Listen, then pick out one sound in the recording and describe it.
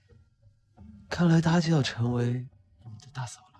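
A young man speaks with a light, teasing tone.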